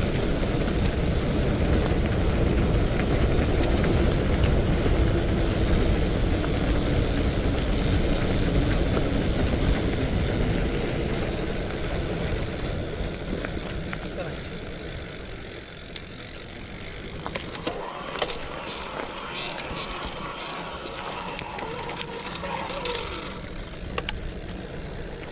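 Bicycle tyres crunch and rumble over a gravel path.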